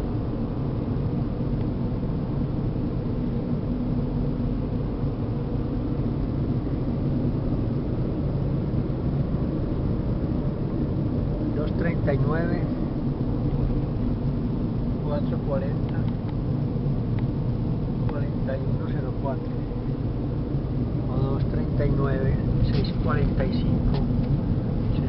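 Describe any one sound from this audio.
A car drives along a road with a steady low rumble from inside.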